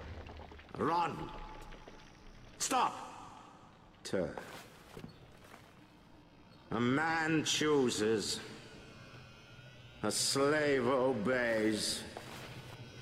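A middle-aged man speaks in short, commanding bursts, close and clear.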